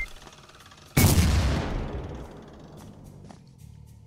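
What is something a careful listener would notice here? An explosion bursts loudly and rumbles away.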